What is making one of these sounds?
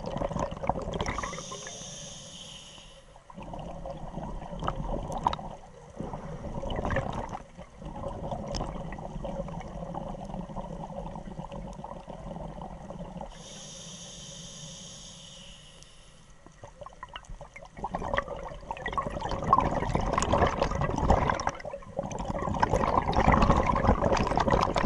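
Scuba bubbles gurgle and rumble loudly as a diver breathes out underwater.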